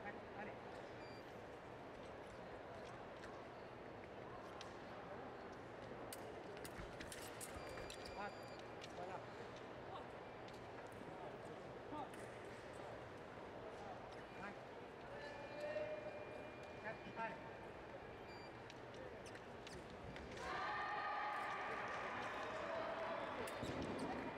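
Fencers' footsteps thud and squeak on a springy floor.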